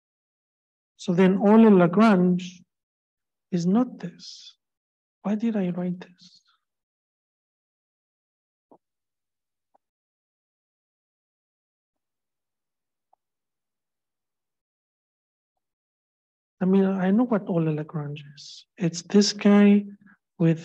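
A man lectures calmly into a microphone, heard through an online call.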